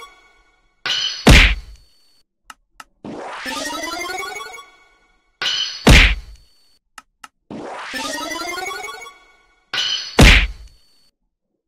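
A video game plays a sharp hit effect for an attack.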